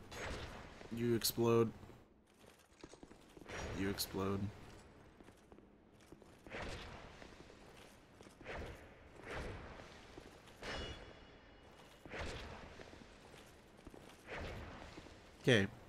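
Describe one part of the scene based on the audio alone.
Fire bursts with a whoosh.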